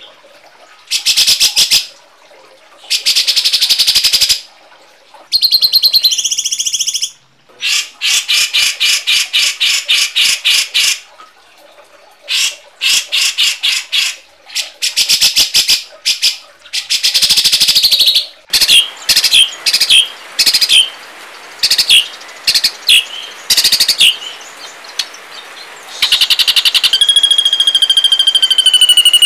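Birds give loud, harsh, rapid chattering calls in bursts.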